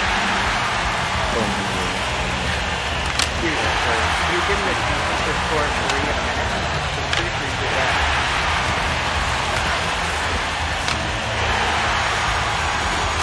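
Hockey skates scrape across ice.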